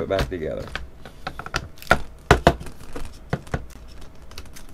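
A wooden frame knocks and rattles as it is handled.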